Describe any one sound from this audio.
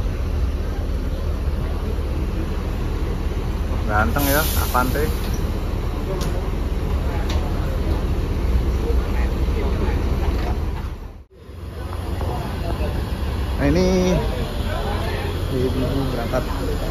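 Bus engines idle with a low, steady rumble.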